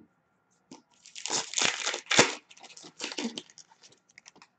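A foil pack crinkles as hands tear it open.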